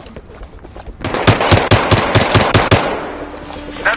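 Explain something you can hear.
Rapid gunshots crack in a quick burst.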